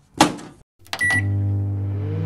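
A microwave oven beeps once.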